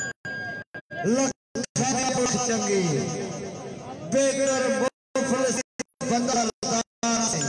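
A camel groans and bellows loudly.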